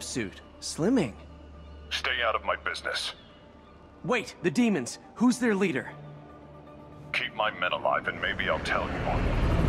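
A man speaks calmly through a phone.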